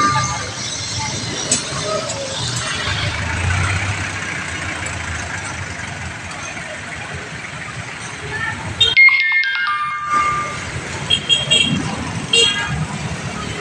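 Tyres splash through water on a wet road.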